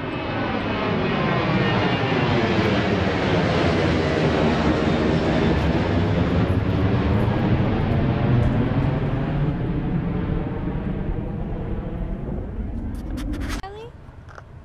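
A jet airliner roars low overhead and slowly fades.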